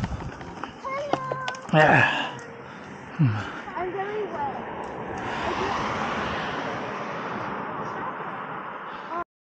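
A young girl talks nearby outdoors.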